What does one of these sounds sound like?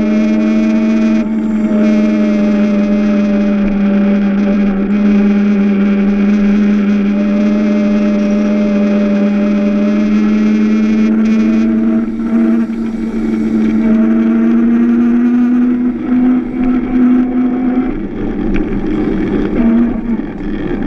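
A small kart's electric motor whines steadily up close.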